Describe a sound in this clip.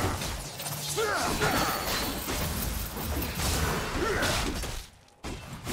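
Fantasy battle spell effects whoosh and crackle.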